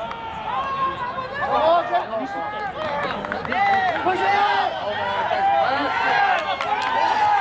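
Young men shout excitedly outdoors.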